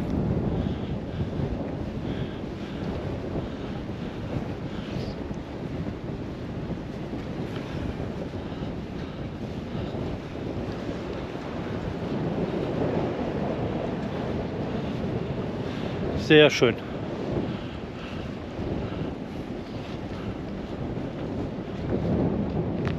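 Wind gusts steadily and rumbles outdoors.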